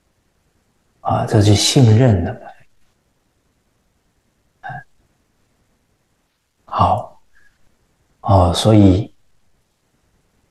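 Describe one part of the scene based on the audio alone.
A middle-aged man speaks calmly into a close microphone, in short phrases with long pauses.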